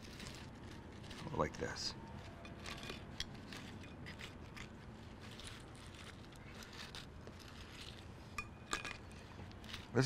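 Metal tongs clink softly against a plate.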